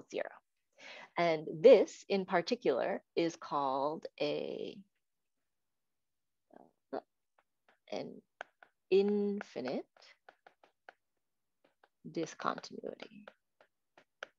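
A young woman speaks calmly through an online call, in bursts with pauses.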